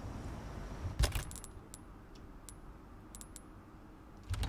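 Short menu clicks tick quietly.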